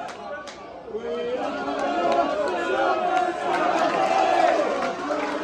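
A large crowd of fans sings and chants loudly outdoors.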